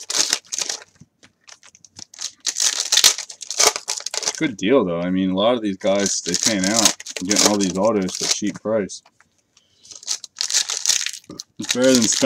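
Foil card packs crinkle and rustle as they are torn open.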